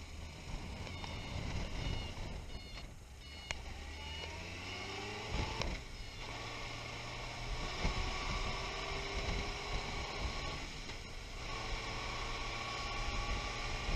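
A motorcycle engine hums and rises in pitch as the bike speeds up through the gears.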